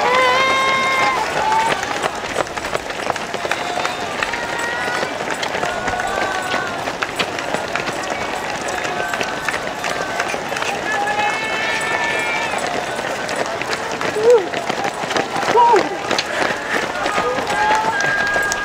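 Many runners' footsteps patter on the road outdoors.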